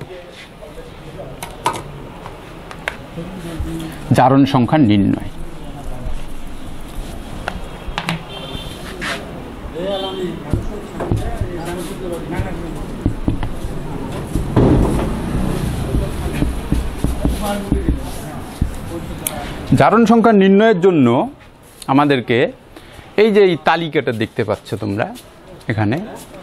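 A man speaks calmly into a microphone, explaining.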